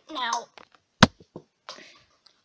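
A small foam ball bounces on a carpet.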